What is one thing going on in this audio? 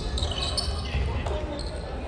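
A basketball bounces on a hardwood floor in an echoing gym.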